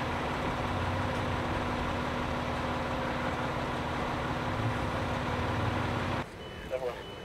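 A fire engine idles with a steady low rumble.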